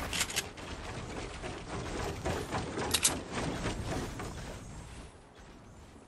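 Wooden panels clatter and snap into place in quick succession.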